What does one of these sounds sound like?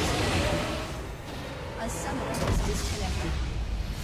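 Game spell effects crackle and boom in a fight.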